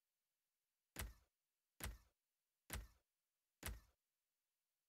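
Short electronic menu clicks sound at an even pace.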